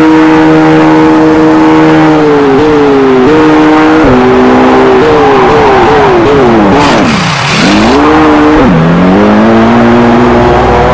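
A racing car engine whines loudly, its pitch dropping in steps through downshifts and then climbing again.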